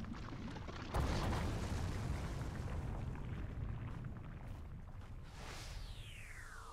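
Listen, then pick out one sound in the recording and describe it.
A deep rumbling eruption bursts out and slowly dies away.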